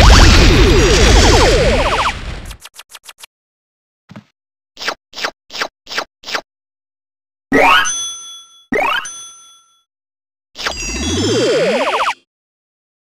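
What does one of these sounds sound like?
A bright video game jingle sweeps and sparkles.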